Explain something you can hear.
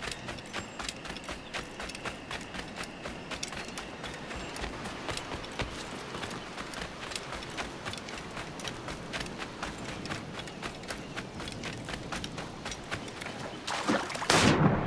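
Quick footsteps run over sand and rock.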